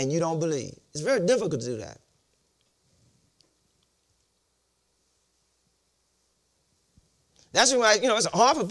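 A middle-aged man preaches with animation into a microphone, pausing between phrases.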